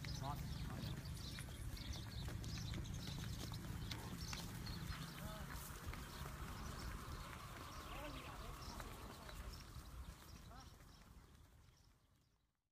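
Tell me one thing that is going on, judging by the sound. Cattle hooves thud and scuff on dry, dusty ground.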